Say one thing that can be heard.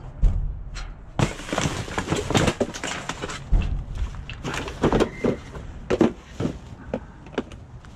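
Plastic trash bags rustle and crinkle as they are handled.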